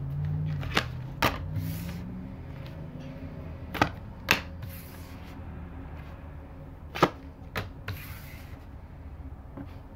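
Playing cards are laid down on a table with soft taps.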